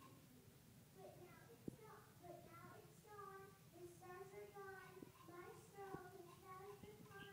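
A group of children sings together in an echoing hall.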